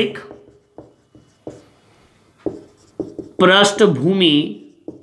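A marker squeaks and taps on a whiteboard.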